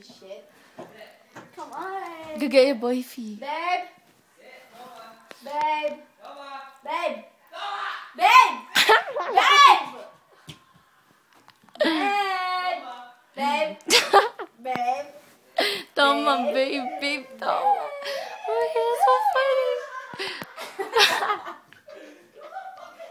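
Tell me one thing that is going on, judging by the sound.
A young girl talks and giggles close by, with animation.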